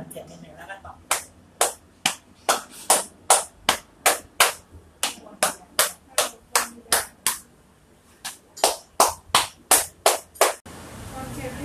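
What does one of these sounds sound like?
Hands pat and slap rapidly on a person's back.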